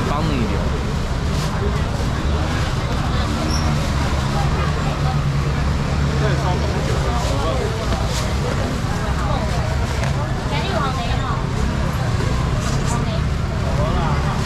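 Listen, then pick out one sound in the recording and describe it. Plastic bags rustle and crinkle nearby.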